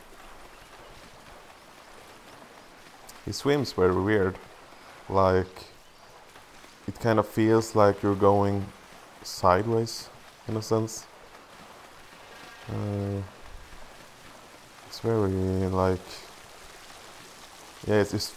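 Water splashes as a swimmer paddles.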